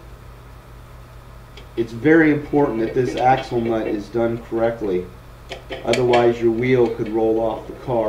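A metal brake disc scrapes and clanks as it slides onto a wheel hub.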